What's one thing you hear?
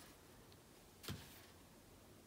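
A plastic bottle knocks against a table.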